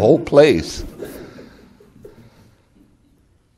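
An elderly man laughs heartily close to a microphone.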